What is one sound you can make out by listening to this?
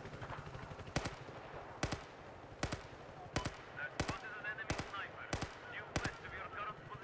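A rifle fires single sharp shots one after another.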